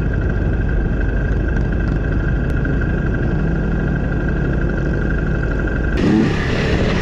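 A motorcycle engine idles close by with a steady rumble.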